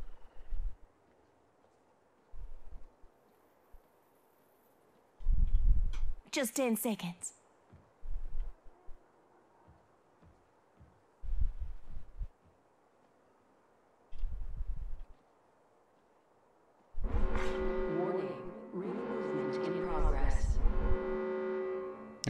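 Footsteps thud on hard ground in short bursts.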